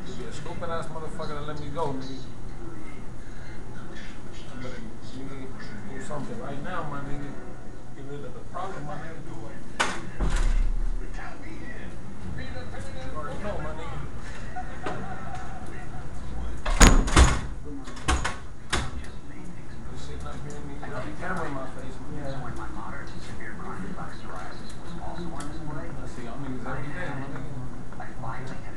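A young man raps rhythmically, close by.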